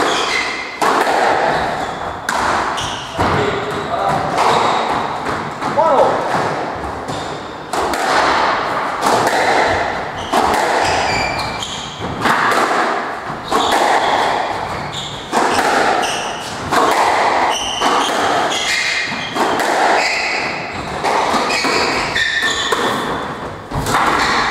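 Shoes squeak sharply on a wooden floor.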